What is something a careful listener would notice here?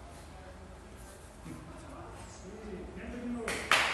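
Bare feet pad softly on a floor.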